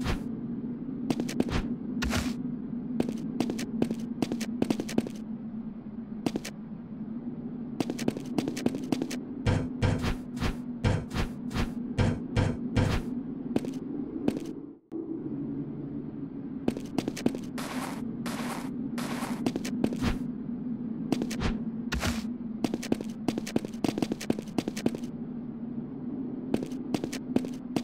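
Quick footsteps tap as a figure runs.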